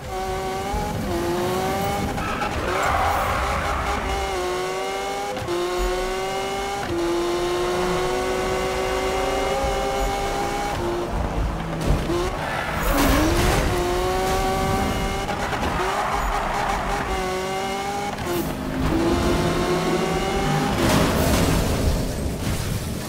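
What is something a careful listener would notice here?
A racing car engine roars, climbing in pitch and dropping back with each gear change.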